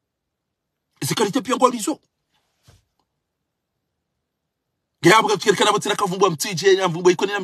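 A middle-aged man speaks close to a microphone with animation, pausing between phrases.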